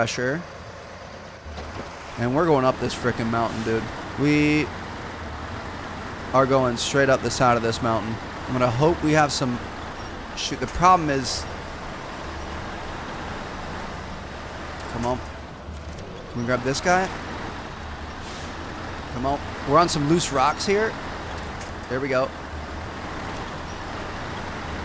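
A truck engine rumbles low and steadily.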